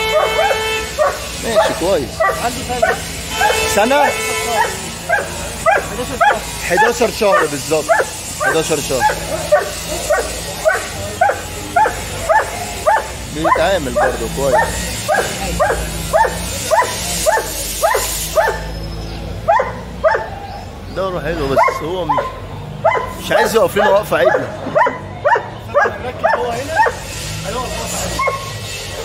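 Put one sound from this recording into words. A large dog barks loudly and repeatedly close by.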